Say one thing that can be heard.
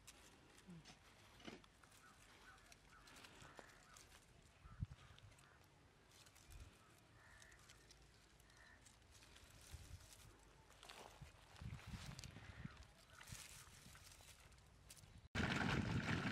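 Leaves and stems rustle as tomatoes are picked.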